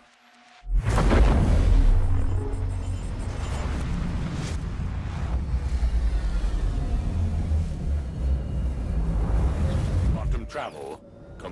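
A spaceship engine roars with a deep, steady rumble.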